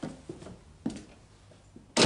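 A wooden door opens.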